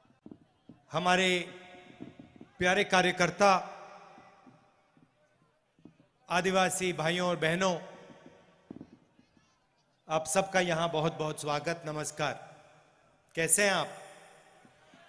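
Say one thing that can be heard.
A man speaks forcefully into a microphone over loudspeakers outdoors, in loud bursts with pauses.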